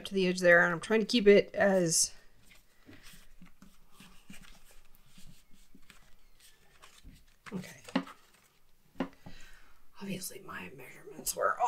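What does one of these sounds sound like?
Paper rustles and creases as it is folded.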